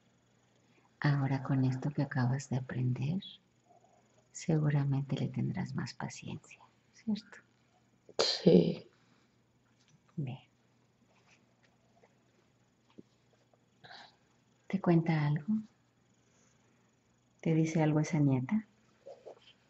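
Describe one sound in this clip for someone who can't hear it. A young woman murmurs and groans in her sleep close by.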